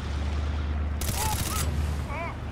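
An assault rifle fires a shot.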